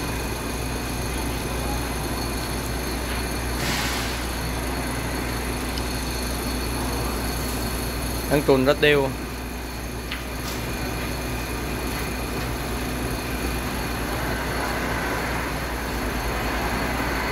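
A large pot of liquid boils and bubbles steadily.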